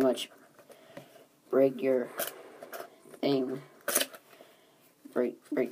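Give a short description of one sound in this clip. A cardboard box rustles and taps as hands turn it.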